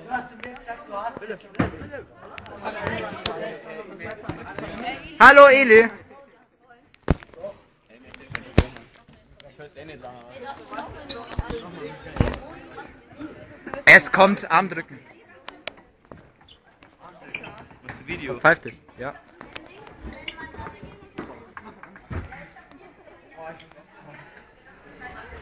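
A crowd of young people talks and shouts nearby.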